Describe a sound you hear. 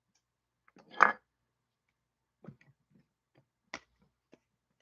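Hard plastic card cases click and tap together.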